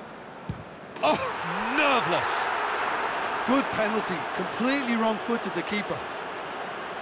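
A large crowd bursts into loud cheering.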